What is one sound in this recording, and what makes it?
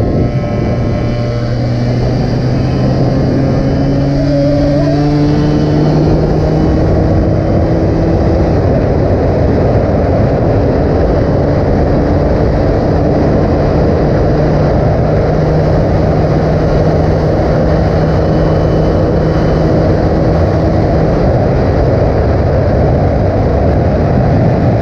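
A motorcycle engine hums steadily while riding at speed.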